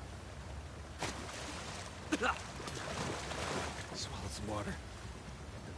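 A person splashes into water.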